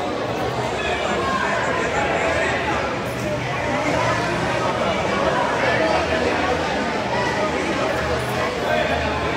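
A crowd of spectators chatters throughout.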